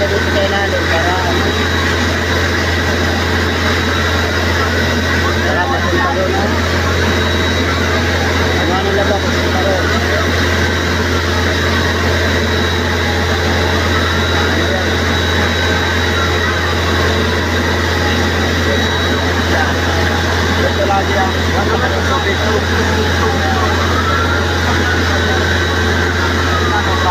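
A fire truck siren wails, rising and falling.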